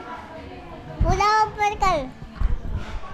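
A young girl squeals in a high voice.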